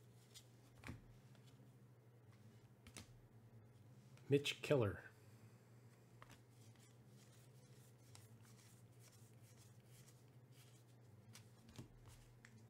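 Trading cards slide and rustle softly between hands.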